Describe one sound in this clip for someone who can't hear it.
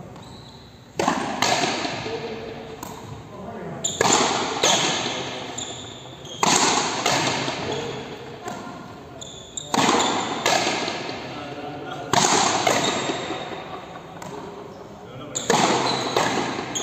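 Frontenis rackets strike a ball.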